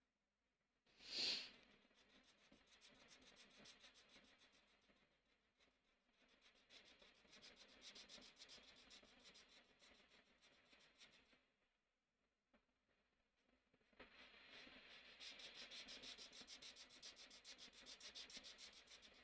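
A felt-tip marker scratches rapidly across paper.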